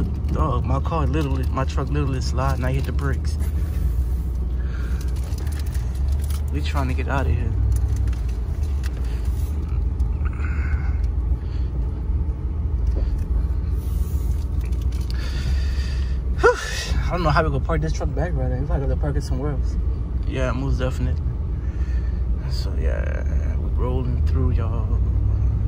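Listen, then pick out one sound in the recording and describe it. A vehicle engine rumbles steadily from inside the cab.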